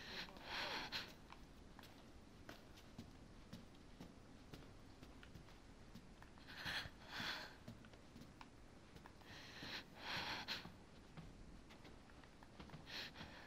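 Footsteps creak slowly across a wooden floor.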